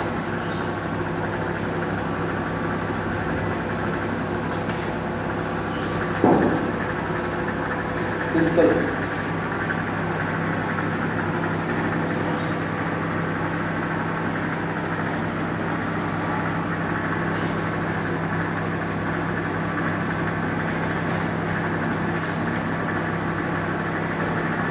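An electric fan hums steadily.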